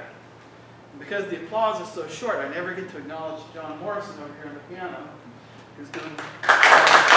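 A man speaks to an audience in a large hall.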